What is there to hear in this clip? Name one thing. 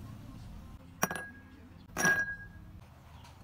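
A nut drops and clinks into a ceramic bowl.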